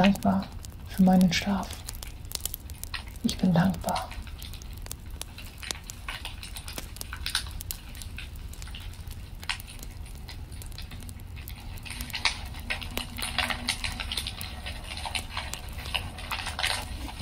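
A wood fire crackles and pops.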